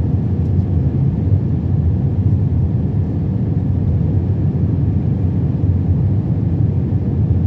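A jet engine roars steadily with a deep, rumbling hum inside an airliner cabin.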